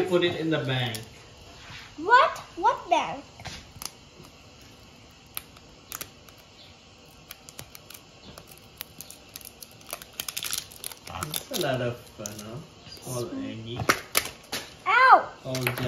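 Plastic eggs click and snap as they are pulled open.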